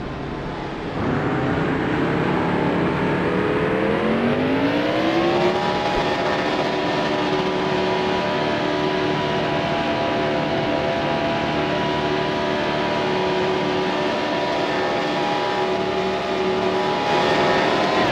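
A race car engine revs up as the car pulls away, then hums at a steady pitch.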